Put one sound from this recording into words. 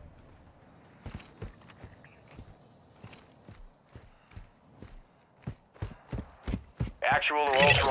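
Footsteps tread quickly on hard ground.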